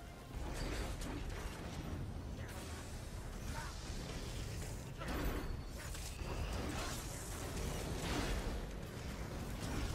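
Magic blasts whoosh and crackle in a noisy fight.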